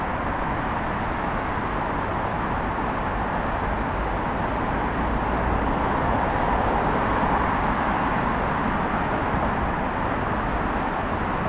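Steady traffic roars along a busy road nearby.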